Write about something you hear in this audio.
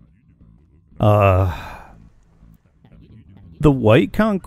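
A man speaks with animation into a microphone, close up.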